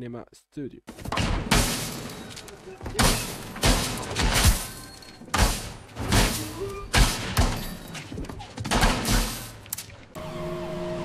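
Punches and blows land hard in a fight.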